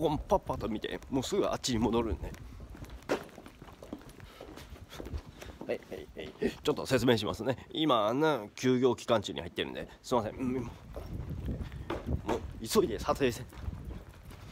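A young man talks close to a microphone, casually and with animation.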